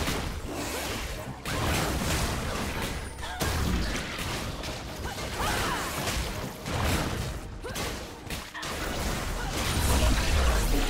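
Magic blasts and weapon strikes crackle and boom in a frantic fantasy battle.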